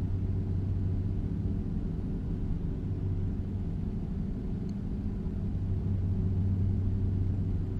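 A truck engine rumbles steadily at speed.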